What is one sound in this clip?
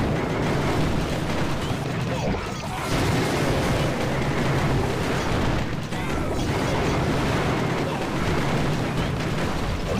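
Fire roars in bursts.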